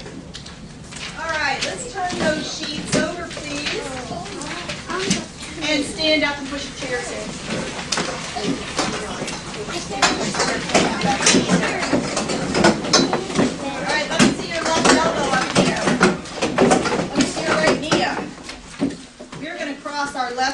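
Children chatter and call out in a busy, echoing room.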